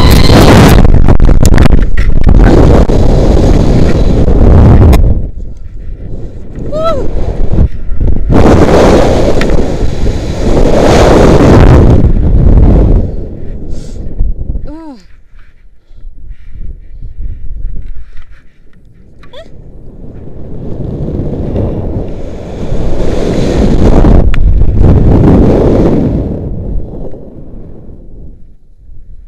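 Wind rushes loudly past in strong surges that rise and fall.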